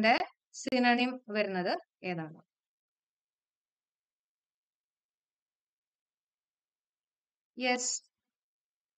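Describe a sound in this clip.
A young woman speaks clearly and calmly into a close microphone, with long pauses.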